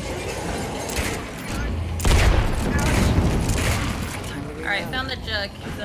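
Gunshots bang loudly, one after another.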